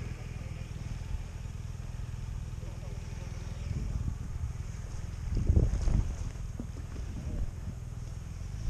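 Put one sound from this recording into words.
A motorcycle engine idles and rumbles steadily close by.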